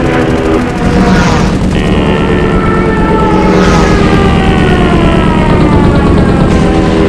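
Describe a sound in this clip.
Propeller plane engines drone loudly, their pitch slowly sinking.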